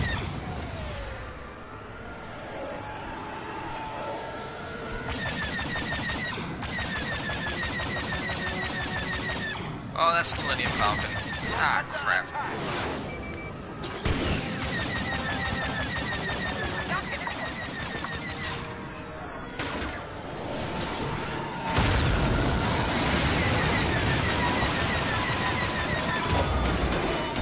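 A starfighter engine roars steadily.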